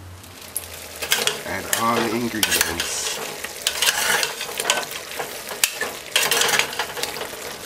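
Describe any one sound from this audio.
Meat sizzles and crackles as it fries in a pot.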